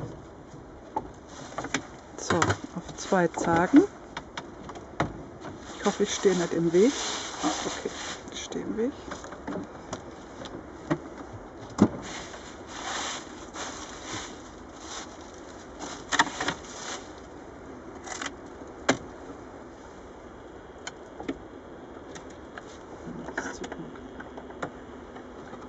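Wooden boxes knock and clatter as they are handled.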